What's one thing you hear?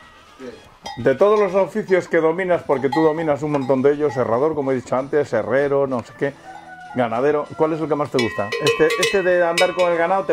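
An elderly man talks with animation close by.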